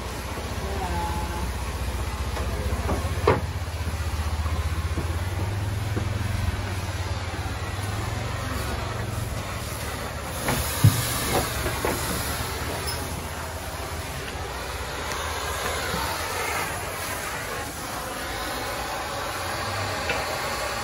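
A fogging machine's engine drones and hisses steadily.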